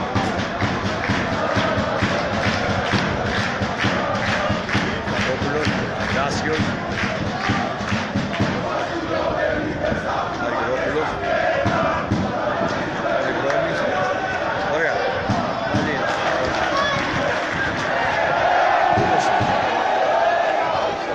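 A large crowd cheers and chants in an open stadium.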